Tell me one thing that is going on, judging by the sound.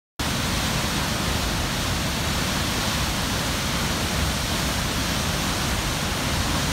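A powerful waterfall roars steadily as water thunders down through a rocky gorge.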